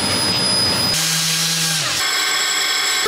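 An orbital sander hums against metal.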